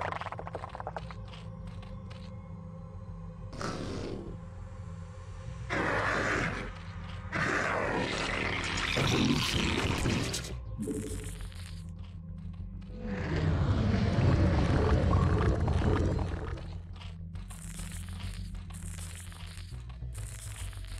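Alien creatures in a video game chitter and squelch.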